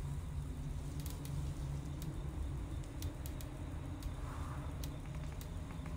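Soft menu clicks tick quickly, one after another.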